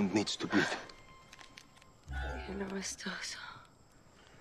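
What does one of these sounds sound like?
A woman gasps and moans softly.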